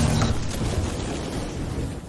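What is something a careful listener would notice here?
Flames roar and crackle in a game.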